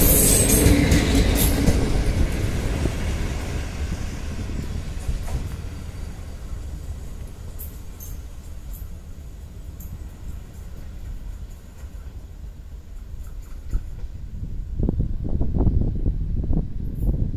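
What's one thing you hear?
A train rumbles away along the tracks, fading into the distance.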